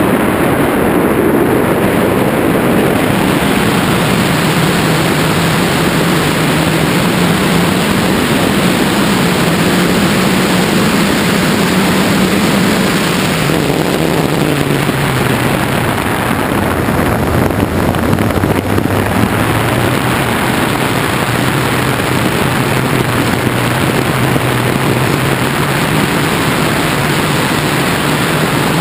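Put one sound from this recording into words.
Wind roars steadily past a microphone in flight.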